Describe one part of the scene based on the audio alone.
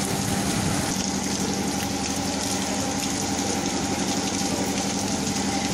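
Heavy rain pours steadily onto a wet street.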